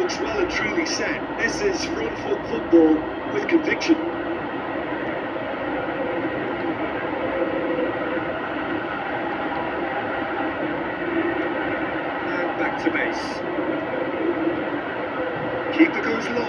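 A crowd roars steadily from a football video game over a speaker.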